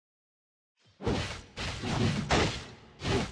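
Game spell effects whoosh and burst loudly in quick bursts.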